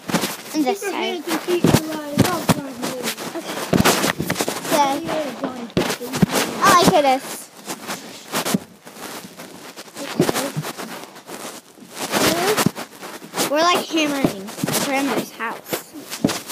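A young girl talks with animation close to the microphone.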